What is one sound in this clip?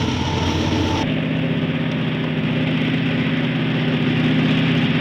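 A diesel locomotive engine drones steadily as it approaches.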